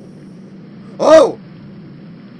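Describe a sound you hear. A young man shouts out briefly into a close microphone.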